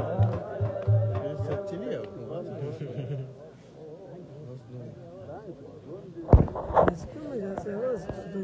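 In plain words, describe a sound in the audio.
A crowd of men chatter and call out.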